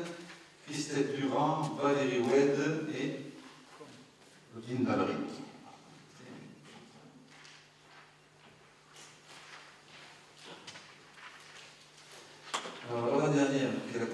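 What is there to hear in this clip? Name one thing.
A middle-aged man speaks calmly into a microphone in a large room with some echo.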